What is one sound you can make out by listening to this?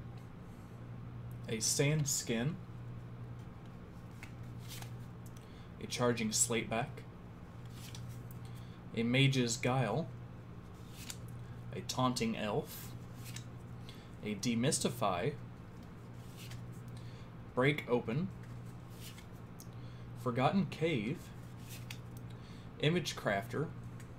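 Playing cards slide and rustle softly between hands.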